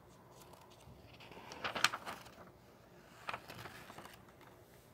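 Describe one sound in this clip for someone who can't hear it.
Notebook pages rustle as a hand turns them.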